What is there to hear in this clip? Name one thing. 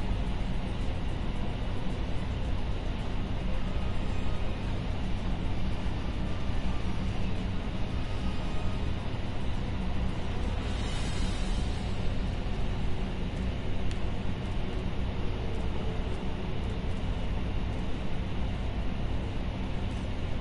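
A spaceship engine hums with a low, steady drone.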